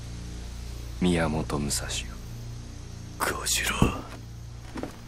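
A young man speaks calmly and mockingly.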